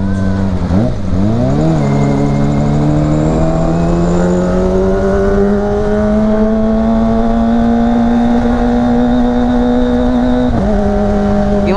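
A motorcycle engine revs up close, dropping and rising in pitch as it changes gear.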